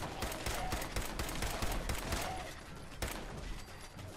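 Automatic gunfire rattles in bursts.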